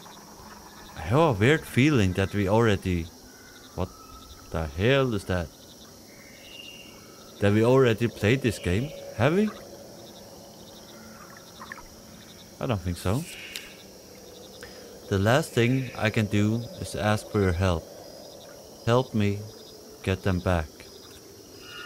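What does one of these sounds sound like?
A man talks into a close microphone, calmly and with pauses.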